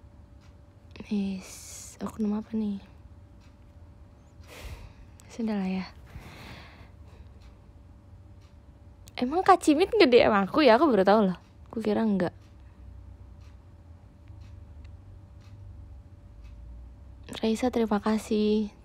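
A young woman speaks brightly close by, with long pauses.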